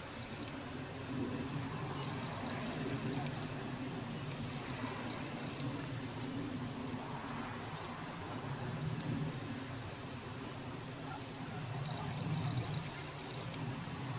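A jet airliner rumbles faintly high overhead.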